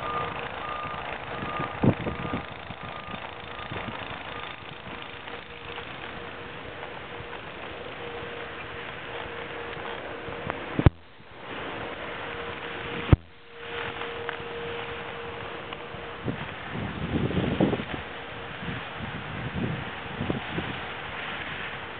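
A snowboard scrapes and hisses over snow.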